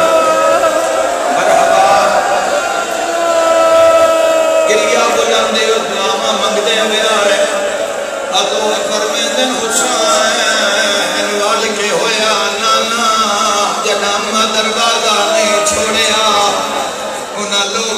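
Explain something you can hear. A crowd of men beat their chests in rhythm.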